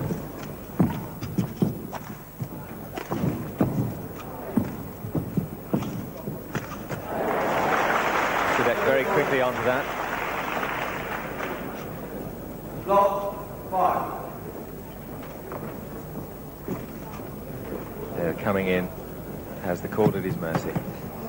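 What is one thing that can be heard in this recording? A shuttlecock is struck sharply by rackets in a rally.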